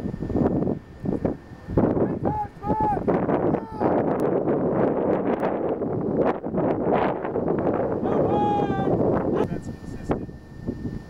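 Wind blows hard across the microphone outdoors.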